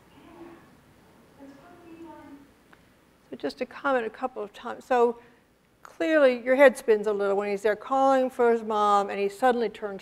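A woman speaks gently to a small child, heard over loudspeakers in an echoing hall.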